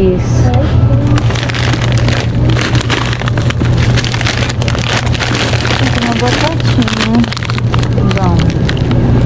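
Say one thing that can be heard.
A plastic bag of frozen food crinkles as it is picked up.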